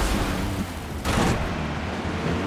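A car crashes into metal with a loud bang.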